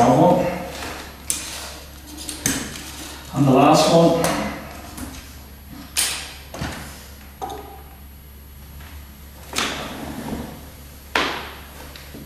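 Crutches knock on a wooden floor.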